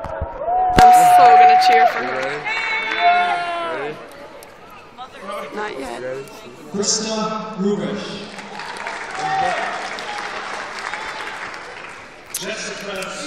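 Young people in an audience cheer and shout close by.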